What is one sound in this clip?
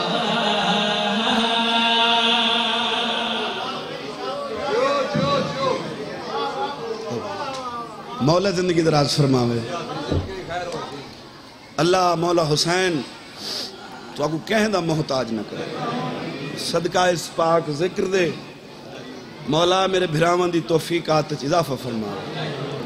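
A man speaks and chants with emotion into a microphone, heard through loudspeakers.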